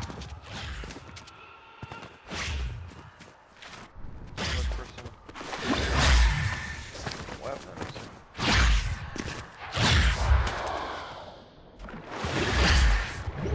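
Quick footsteps patter on the ground as a game character runs.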